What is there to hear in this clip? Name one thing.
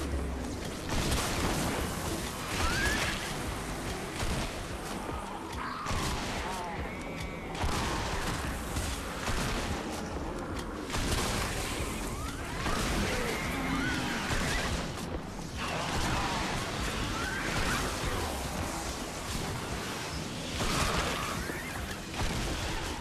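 Melee weapon swings whoosh and strike repeatedly.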